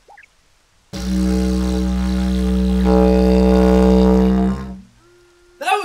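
A man blows a long, steady droning note on a wooden wind instrument.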